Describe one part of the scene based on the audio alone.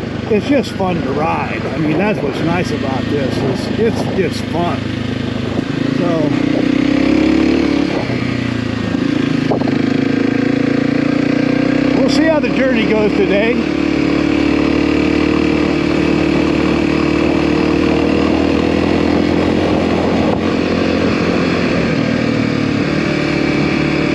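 A motorcycle engine revs and drones up close.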